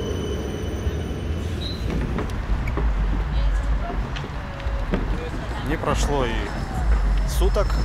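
Outdoors, wind rumbles against the microphone.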